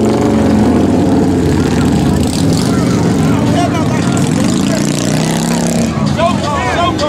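A motorcycle engine rumbles and revs loudly nearby.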